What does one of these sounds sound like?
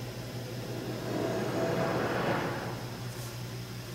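A magical shimmering whoosh swells and fades.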